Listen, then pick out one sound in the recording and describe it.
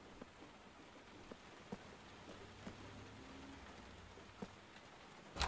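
Footsteps tread slowly on a wooden floor.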